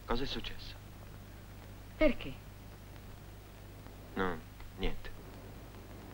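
A woman speaks softly in short phrases, close by.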